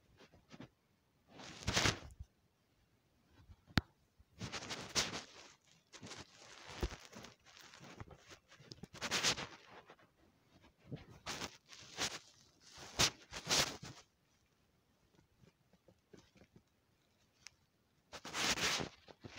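Fabric rustles and rubs right against the microphone in bursts.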